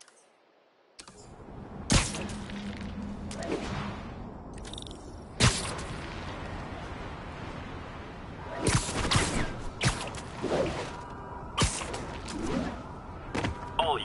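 Sharp snapping thwips sound as webs shoot out.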